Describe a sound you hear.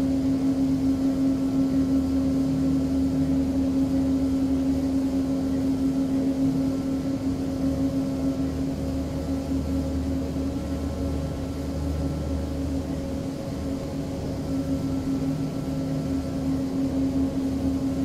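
Aircraft wheels rumble along a runway.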